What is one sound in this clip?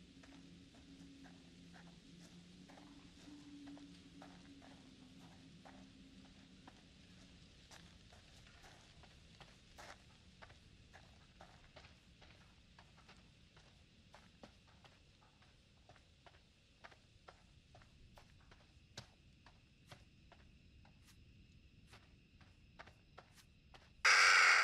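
Footsteps crunch slowly on a path outdoors at night.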